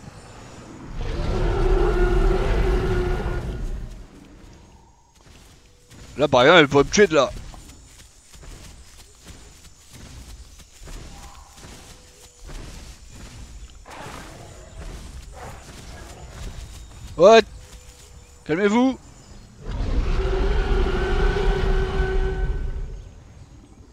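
A large dinosaur lets out a deep, rumbling roar.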